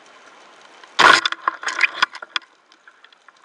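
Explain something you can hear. A speargun fires underwater with a sudden sharp bang.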